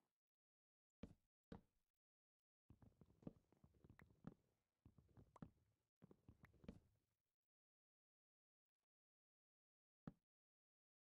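Wooden blocks knock softly as they are placed.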